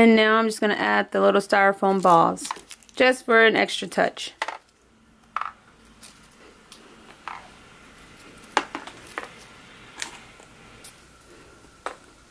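Plastic eggs click softly as a hand sets them into a basket.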